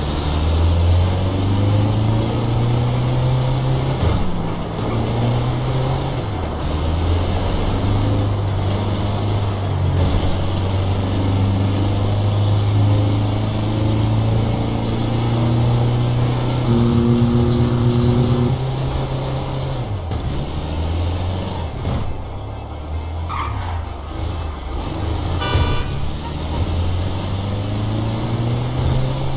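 A van engine hums steadily and revs up and down as it drives.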